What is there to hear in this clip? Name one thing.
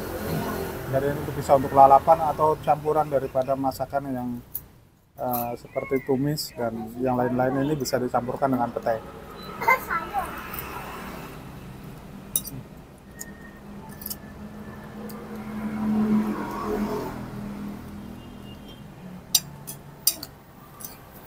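A metal spoon clinks and scrapes against a plate.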